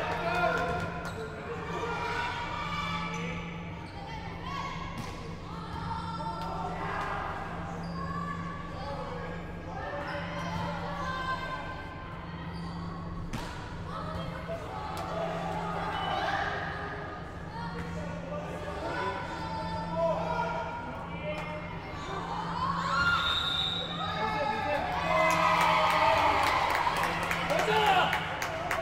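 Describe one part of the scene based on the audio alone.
A crowd of spectators talks and cheers in a large echoing hall.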